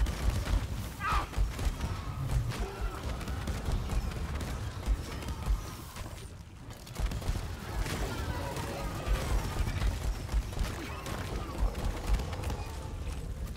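Large insect-like creatures shriek and screech.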